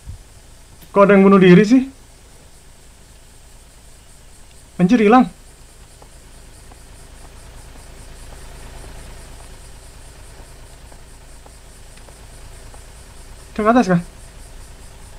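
A young man speaks in short bursts into a close microphone.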